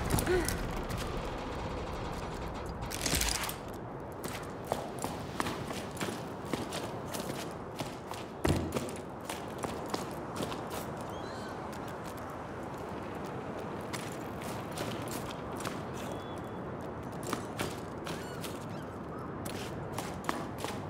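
Footsteps crunch over loose pebbles.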